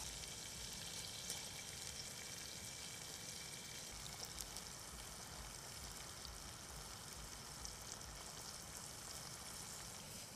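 A small fire crackles softly.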